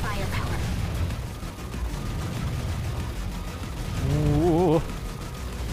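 Rapid video game gunfire and blasts ring out.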